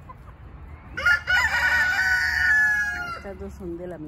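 A hen squawks loudly up close.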